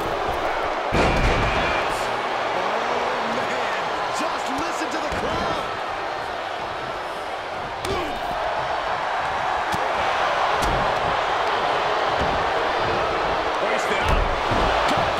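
Bodies thud onto a wrestling ring mat.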